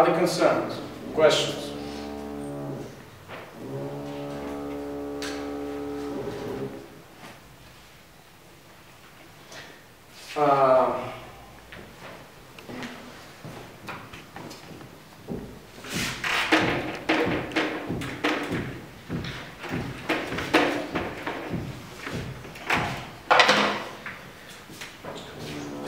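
An elderly man speaks calmly, lecturing, a few steps away.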